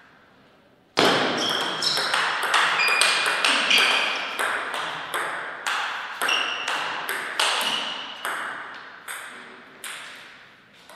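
A table tennis ball bounces off a table.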